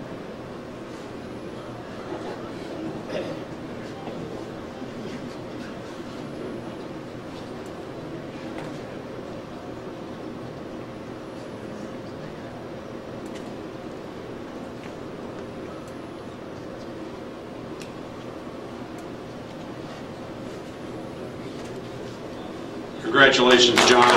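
Quiet voices murmur softly throughout a large room.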